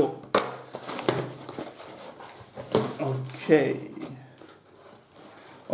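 Paper crinkles as packing is pulled out.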